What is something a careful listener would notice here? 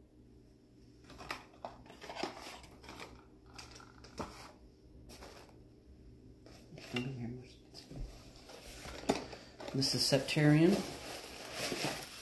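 A cardboard box is opened.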